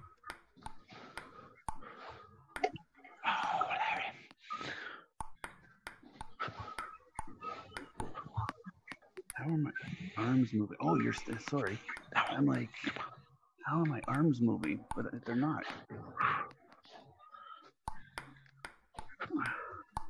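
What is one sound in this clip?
A table tennis ball clicks sharply back and forth against paddles and a table.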